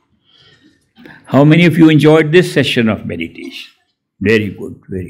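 An elderly man speaks calmly into a microphone close by.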